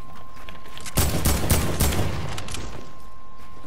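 Rapid gunfire rings out in a short loud burst.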